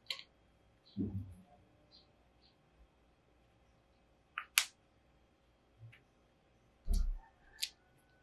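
A handheld console knocks softly on a table.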